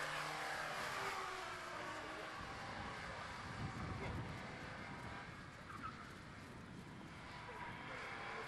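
A small car's engine revs as the car corners on a track.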